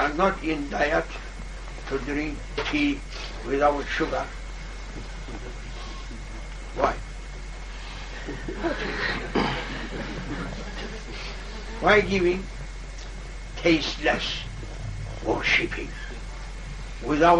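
An elderly man speaks calmly, pausing often.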